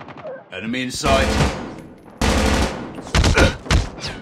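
A rifle fires loud, rapid bursts.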